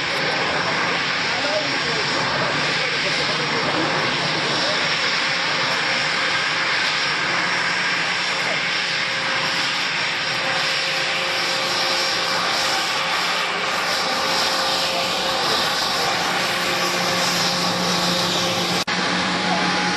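A jet engine whines steadily as a plane taxis close by.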